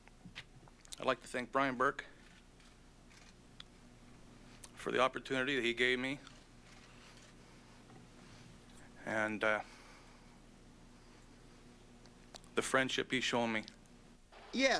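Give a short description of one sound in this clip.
A man speaks haltingly into a microphone, with long pauses.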